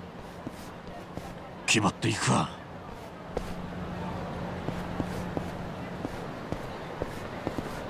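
Footsteps tap lightly on pavement.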